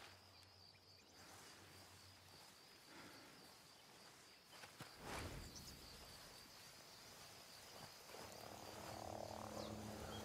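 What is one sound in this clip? Leafy plants rustle as a soldier crawls and moves through them.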